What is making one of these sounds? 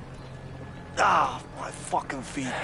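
A man shouts in pain.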